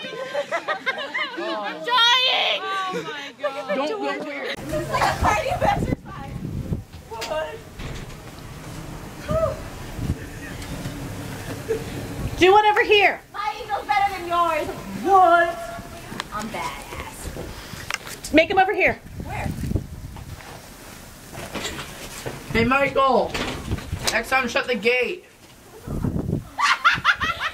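Young men and women talk, shout and laugh nearby outdoors.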